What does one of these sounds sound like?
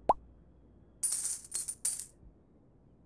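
Bright jingling coins chime briefly.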